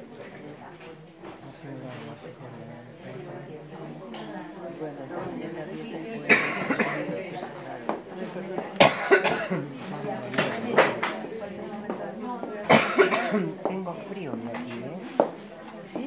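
An elderly man speaks calmly into a microphone close by.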